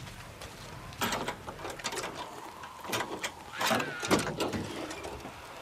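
A metal licence plate is pried loose from a car with scraping clicks.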